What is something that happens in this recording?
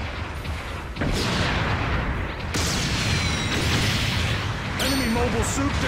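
A gun fires in loud bursts.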